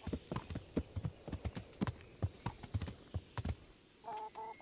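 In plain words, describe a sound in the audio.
Horse hooves clop on hard ground.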